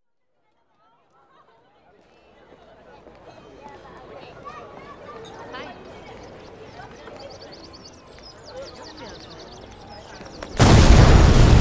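A crowd murmurs and chatters outdoors, fading in.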